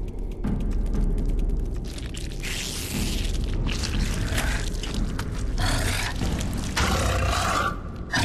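A large beast growls and snarls up close.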